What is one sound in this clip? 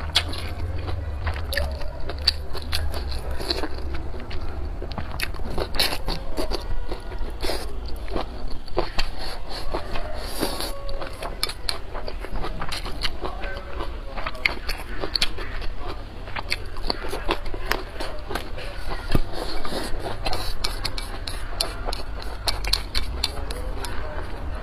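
A young woman chews and slurps food loudly, close to a microphone.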